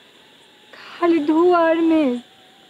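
A young woman sings softly.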